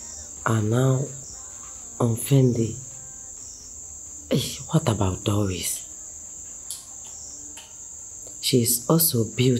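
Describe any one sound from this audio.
Paper pages rustle as a young man flips through a booklet.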